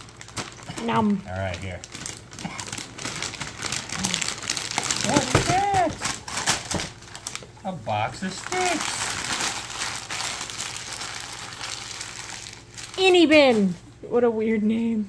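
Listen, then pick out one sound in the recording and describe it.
Wrapping paper crinkles and tears loudly close by.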